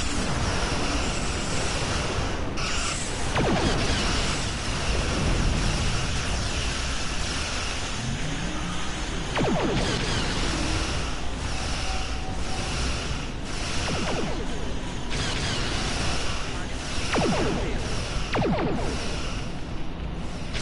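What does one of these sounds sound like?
Energy blasts crackle against a ship's shield.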